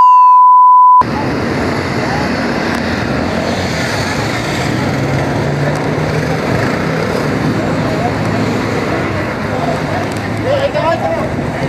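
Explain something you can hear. Engines idle and traffic hums steadily outdoors.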